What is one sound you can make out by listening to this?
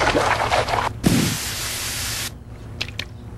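Compressed air blasts with a loud steady hiss.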